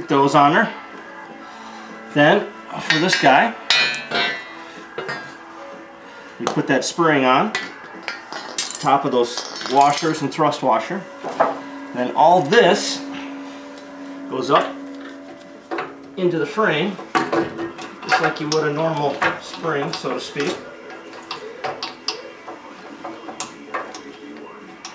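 Metal parts clink and clank.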